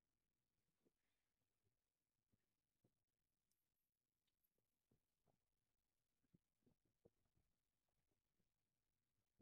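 Footsteps thud softly on pavement at a steady walking pace.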